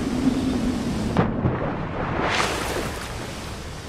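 A body plunges into water with a big splash.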